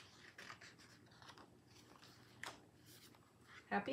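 A paper page turns with a soft rustle.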